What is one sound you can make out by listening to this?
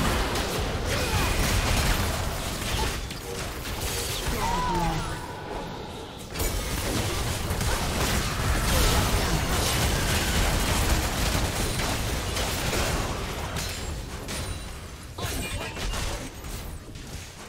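Magic spells blast and crackle in a fierce fight.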